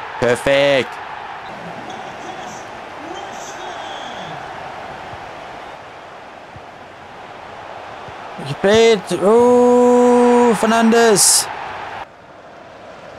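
A large crowd cheers and murmurs steadily, as in a stadium.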